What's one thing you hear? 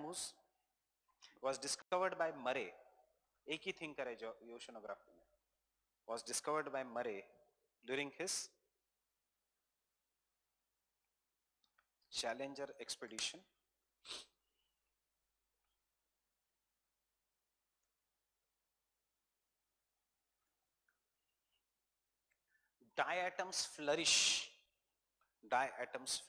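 A man speaks calmly through a clip-on microphone, with long pauses.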